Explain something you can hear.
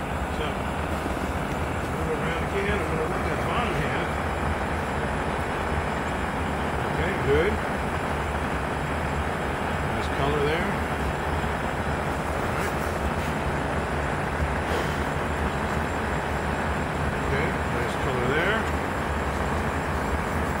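A box fan blows with a steady whir.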